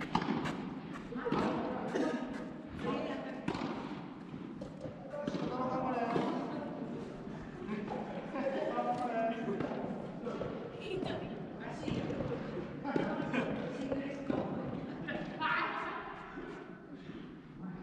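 Tennis balls are struck with rackets in a large echoing hall.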